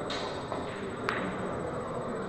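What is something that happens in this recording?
A cue tip strikes a billiard ball with a sharp click.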